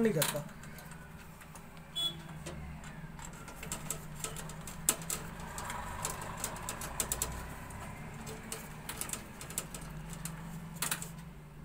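A screwdriver clicks and scrapes against metal screws.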